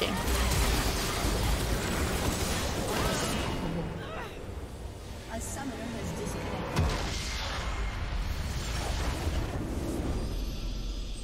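Game spell effects and attacks crackle and clash loudly.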